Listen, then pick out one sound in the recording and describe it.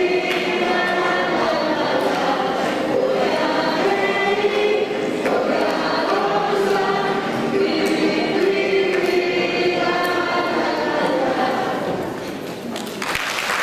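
A young boy sings into a microphone over a loudspeaker.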